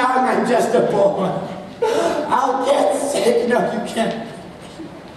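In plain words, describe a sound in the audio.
Several men sing loudly together in a large echoing hall.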